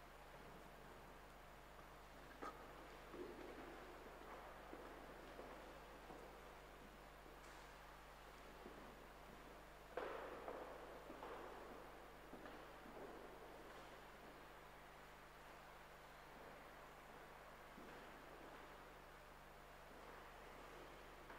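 Footsteps echo through a large, reverberant hall.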